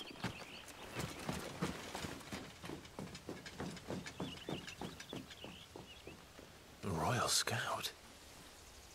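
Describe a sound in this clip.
A young man speaks quietly and calmly.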